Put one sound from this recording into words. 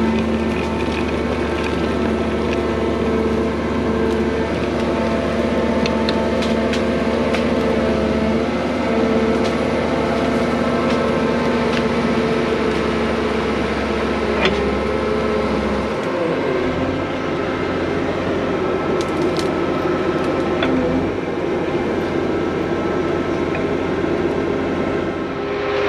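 A tracked machine's diesel engine rumbles steadily close by.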